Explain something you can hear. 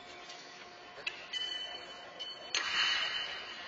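A thrown horseshoe clanks in a large echoing arena.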